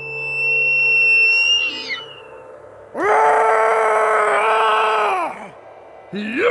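A shimmering electronic tone hums as a glowing pod pulses.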